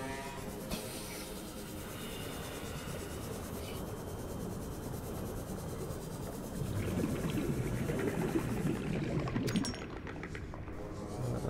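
A small submarine's motor hums steadily underwater.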